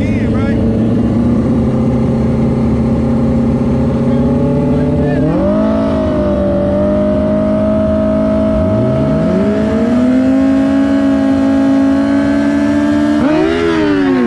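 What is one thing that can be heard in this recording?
A motorcycle engine idles loudly, then revs hard.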